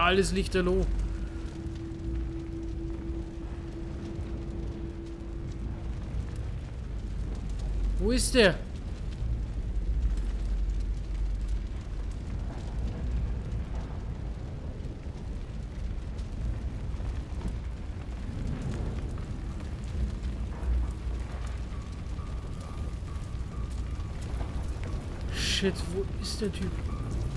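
A fire roars with a low, steady rumble.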